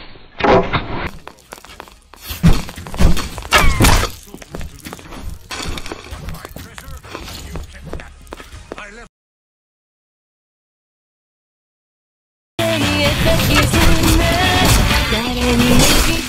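Swords clash and slash repeatedly during a fight.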